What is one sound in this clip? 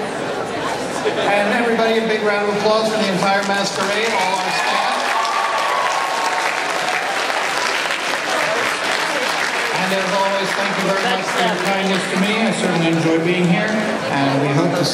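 A crowd of people talks and cheers loudly in a large hall.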